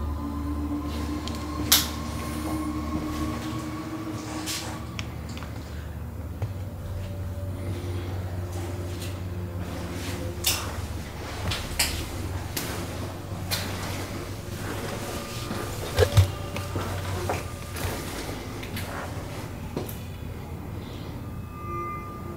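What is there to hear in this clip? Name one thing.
A wooden door is pushed open.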